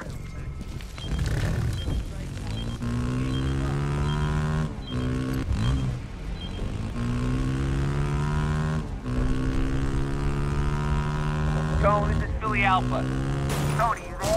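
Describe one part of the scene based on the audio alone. A motorcycle engine roars and revs up and down repeatedly.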